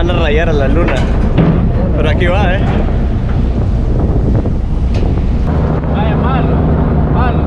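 A ferry engine drones steadily.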